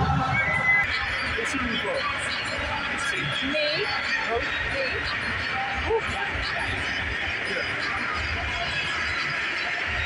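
A large stadium crowd murmurs and cheers in the open air.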